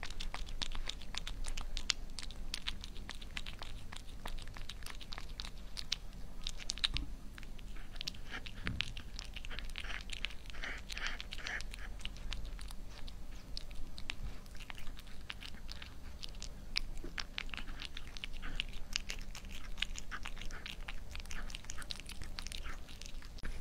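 A cat chews and smacks wet food noisily, close by.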